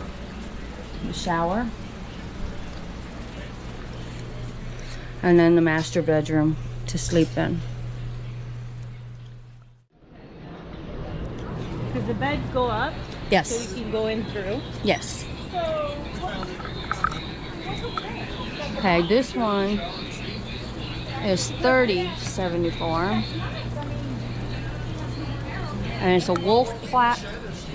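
A woman talks nearby in a casual voice.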